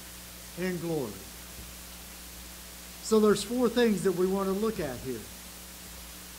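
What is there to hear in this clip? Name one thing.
An elderly man speaks slowly and calmly through a microphone.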